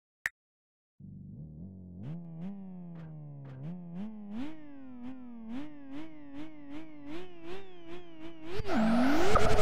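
A car engine revs up and down repeatedly while idling.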